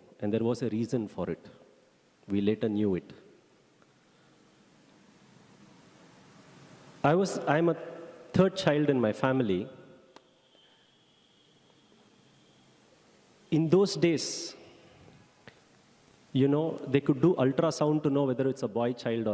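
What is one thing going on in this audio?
A middle-aged man speaks calmly into a microphone, heard through a loudspeaker in a large echoing hall, with long pauses.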